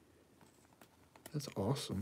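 A plastic sleeve crinkles as a card slides into it.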